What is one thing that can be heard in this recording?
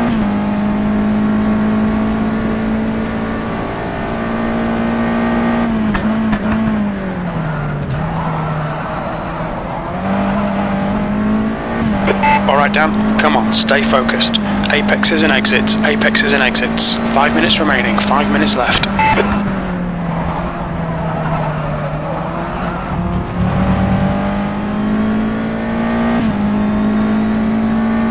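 A racing car engine drones loudly, rising and dropping in pitch as it shifts gears.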